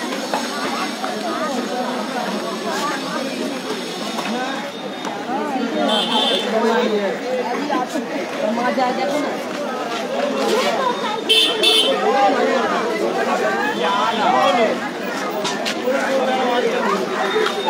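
Many men and women chatter all around in a busy crowd.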